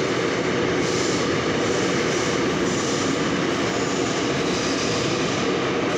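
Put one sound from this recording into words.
A subway train pulls into a station with a low rumble.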